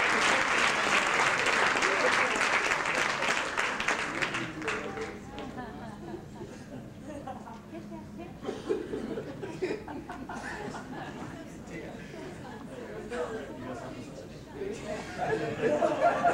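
A crowd of men and women chatters and murmurs nearby.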